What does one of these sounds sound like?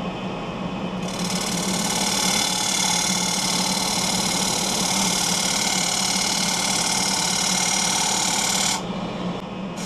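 A bowl gouge cuts into a spinning wooden bowl, peeling off shavings.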